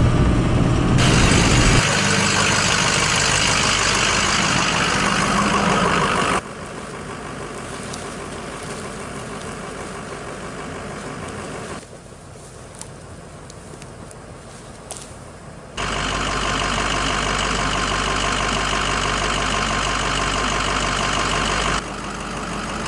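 A truck engine runs loudly nearby.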